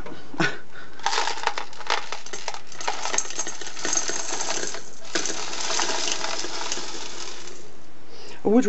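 Small beads pour from paper into a glass with a steady rattle.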